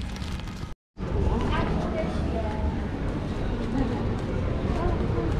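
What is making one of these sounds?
A crowd of people chatters in the background of a busy echoing hall.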